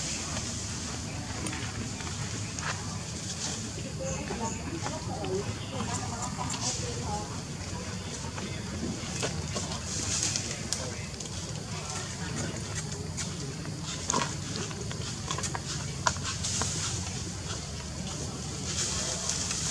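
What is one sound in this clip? Dry leaves rustle and crackle under a baby monkey's feet.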